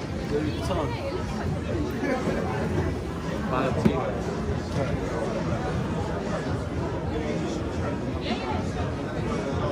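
A crowd of men and women chatter at once nearby.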